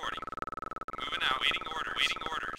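Laser weapons fire in rapid zapping bursts.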